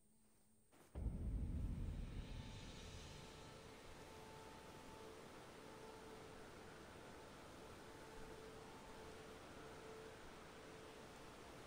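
A strong wind roars and gusts outdoors.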